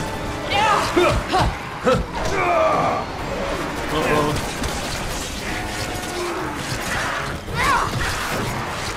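Heavy blows and thuds strike during a struggle.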